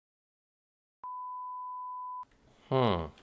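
A steady high beep sounds.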